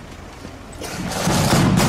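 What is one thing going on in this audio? Snare drums begin to roll and build in loudness.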